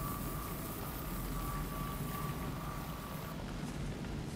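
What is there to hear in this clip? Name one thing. A repair tool hums with a steady electric whine.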